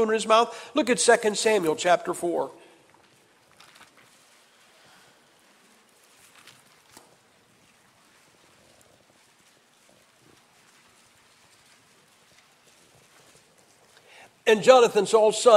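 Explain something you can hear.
A man speaks through a microphone in a calm, measured voice, with a long pause between phrases.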